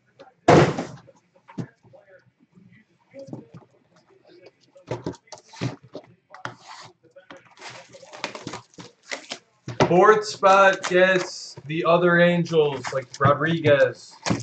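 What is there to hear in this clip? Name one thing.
Cardboard boxes slide and knock together.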